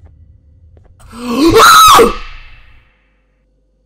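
A man screams loudly.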